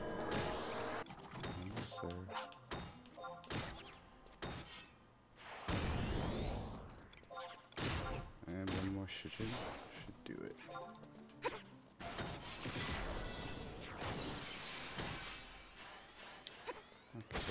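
Weapons clash and strike in a game battle.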